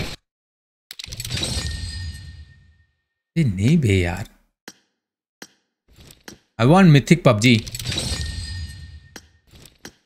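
A bright game reward jingle rings out.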